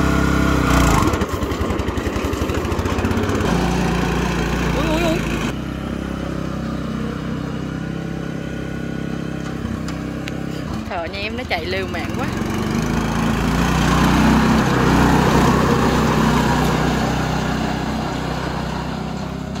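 A small engine chugs as a utility cart drives away and back over dirt.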